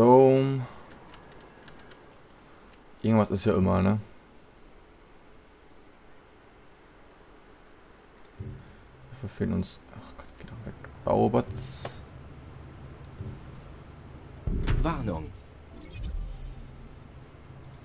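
Soft interface clicks and chimes sound as menus open and close.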